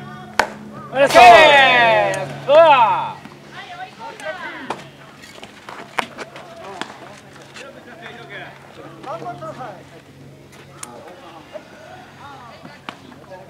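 Young men shout loudly and call out across an open field.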